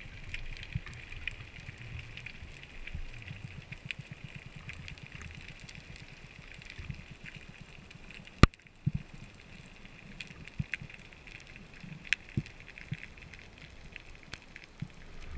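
Faint clicks and crackles sound all around underwater.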